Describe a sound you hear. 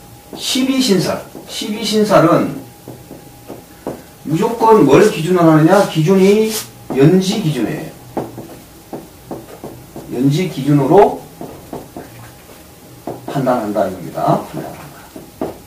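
A middle-aged man speaks calmly and close by, pausing often.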